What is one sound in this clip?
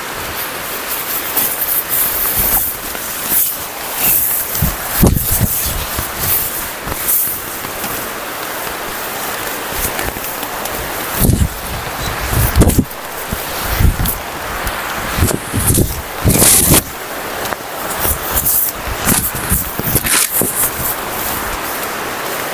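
A plastic tarp rustles and flaps as a man handles it.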